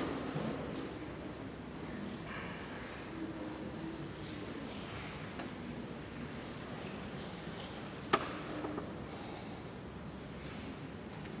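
A man speaks far off through a loudspeaker in a large echoing hall.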